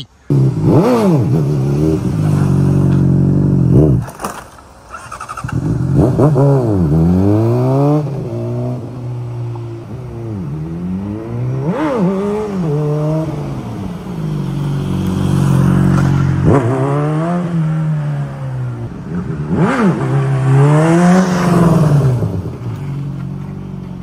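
A motorcycle engine roars past up close, its pitch rising and falling.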